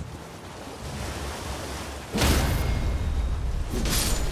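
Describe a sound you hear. A horse gallops, splashing loudly through shallow water.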